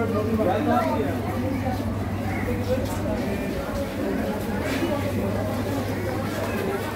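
Refrigerated display cases hum with a low steady drone.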